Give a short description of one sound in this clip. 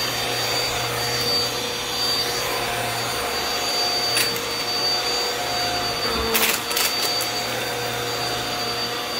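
A vacuum cleaner motor whirs steadily with a high whine.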